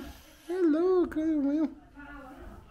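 A toddler babbles up close.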